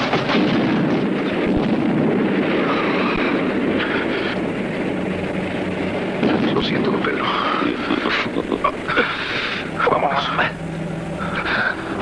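A man shouts in a low, strained voice.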